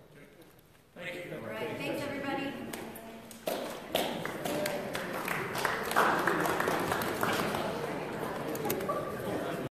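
A group of people applaud in an echoing room.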